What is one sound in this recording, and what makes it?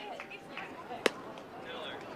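A metal bat cracks sharply against a ball.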